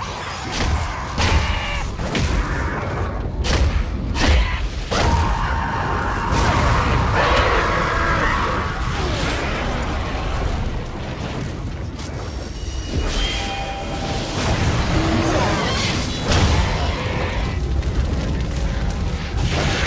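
A staff swishes and strikes enemies in a fight.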